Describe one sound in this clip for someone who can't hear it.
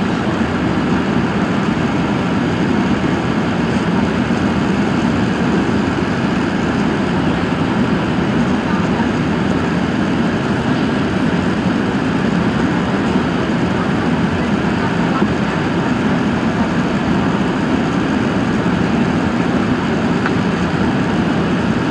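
A jet engine roars loudly and steadily from close by.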